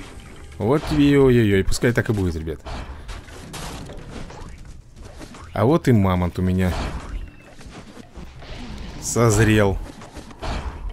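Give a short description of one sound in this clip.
Cartoon fighters grunt and yell as they clash.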